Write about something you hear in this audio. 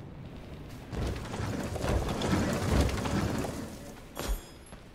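A magical beam blasts with a loud, rushing roar.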